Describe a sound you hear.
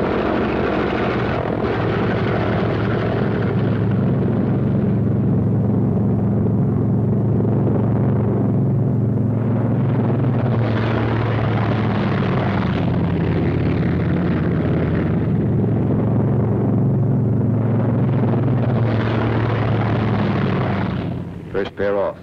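A propeller aircraft engine roars loudly and steadily, swelling and fading.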